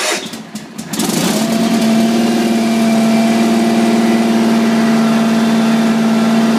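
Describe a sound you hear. A small engine idles steadily with a loud rumble.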